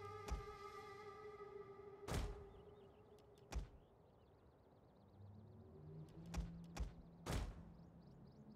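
Weapons clash and bang in a battle.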